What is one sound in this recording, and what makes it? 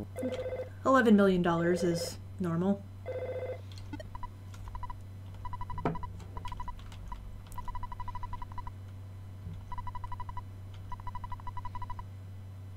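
Rapid electronic beeps chirp in bursts as game text scrolls.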